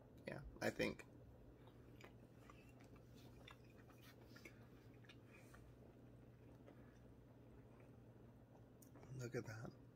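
A man chews crunchy food with his mouth closed.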